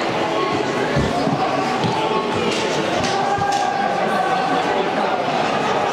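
Hockey sticks clack against the ice and each other.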